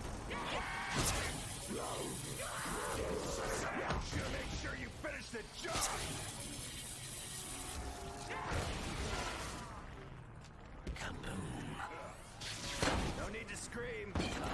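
A weapon fires with loud blasts.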